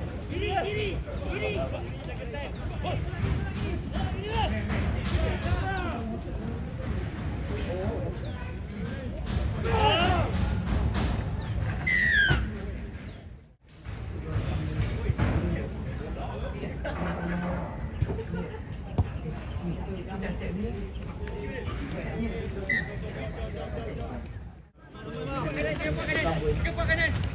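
Young men shout and call to each other across an open playing field.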